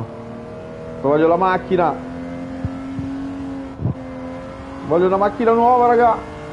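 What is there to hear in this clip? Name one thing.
A car engine hums steadily at speed.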